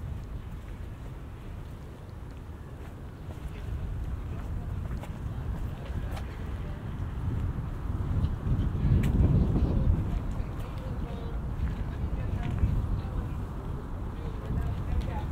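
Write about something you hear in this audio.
Wind rumbles across the microphone outdoors.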